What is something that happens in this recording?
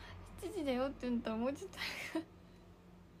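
A young woman laughs in high bursts close to a microphone.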